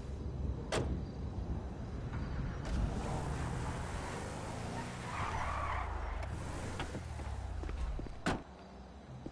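An engine rumbles as a large car drives off.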